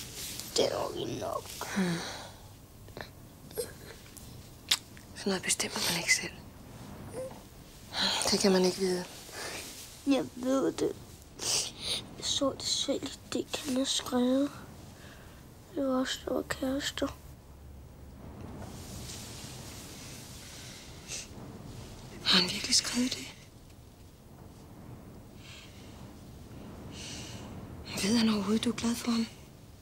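A young girl sobs and cries.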